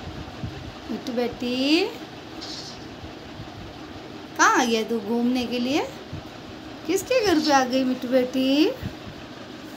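A parrot screeches in long, loud, wavering calls close by.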